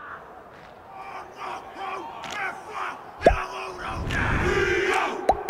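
Men slap their chests and thighs with sharp claps.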